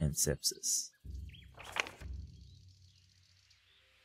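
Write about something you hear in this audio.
A paper page turns over.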